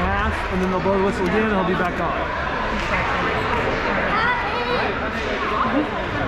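Skates scrape across ice in a large echoing hall.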